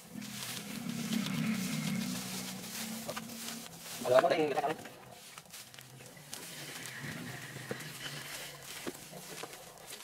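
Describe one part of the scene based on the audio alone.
Dry cut grass rustles as it is piled into a wheelbarrow.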